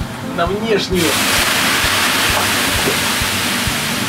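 Water hisses and sizzles on hot sauna stones.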